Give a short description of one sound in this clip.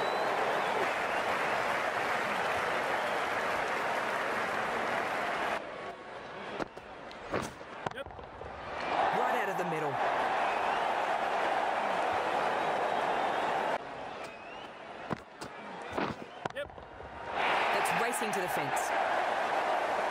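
A large crowd cheers and roars in a stadium.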